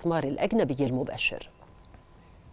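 A man speaks briefly and with animation, heard through a microphone.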